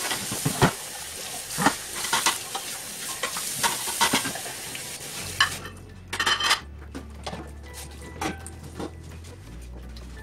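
A sponge scrubs a plate.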